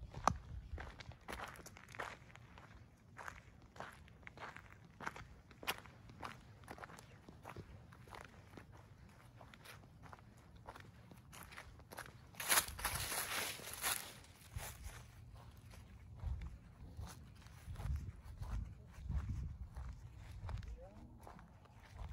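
Footsteps crunch on dry leaves and grass.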